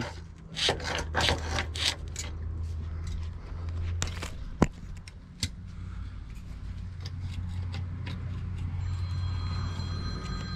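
A plastic hose rubs and scrapes against concrete.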